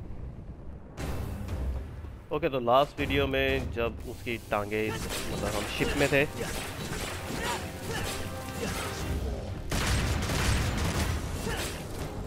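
A sword slashes into a creature again and again.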